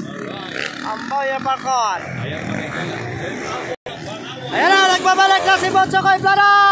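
A motorcycle engine revs loudly nearby, its pitch rising and falling.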